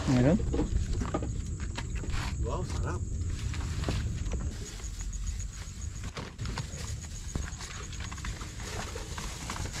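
A large leaf rustles and crinkles as it is handled close by.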